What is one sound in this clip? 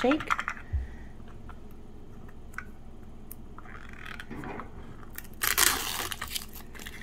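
Paper rustles and crinkles between fingers.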